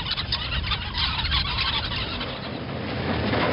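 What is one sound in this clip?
A flock of birds calls across the water.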